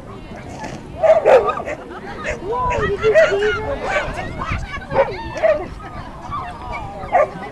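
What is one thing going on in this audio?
A woman calls out excitedly to a dog.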